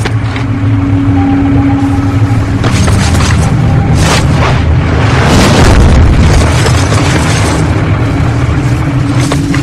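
Footsteps crunch quickly over rubble.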